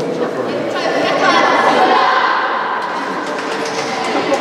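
Young girls cheer loudly together.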